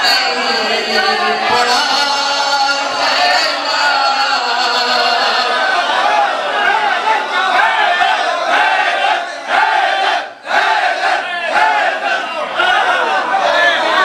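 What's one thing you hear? A crowd of men shouts and cheers with enthusiasm.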